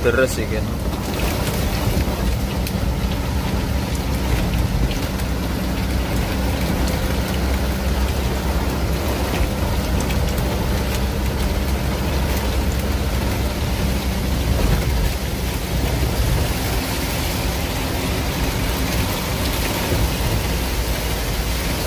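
Rain patters on the windshield.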